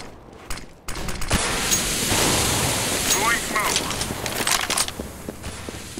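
A smoke grenade hisses loudly as it releases smoke.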